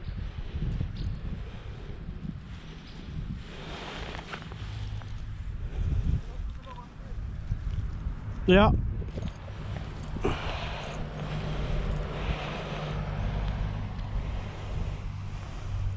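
Hands rustle and shuffle a fishing net on grass.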